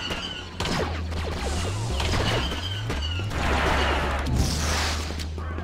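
Laser blasters fire in quick bursts of sharp zaps.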